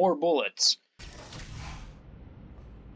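A heavy sliding door opens with a mechanical whoosh.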